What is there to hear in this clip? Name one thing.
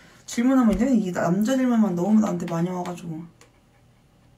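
A young woman talks animatedly and close up.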